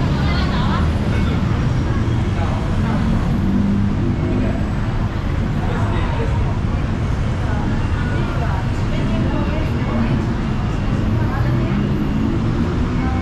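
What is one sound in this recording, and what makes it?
A crowd of people murmurs in the distance.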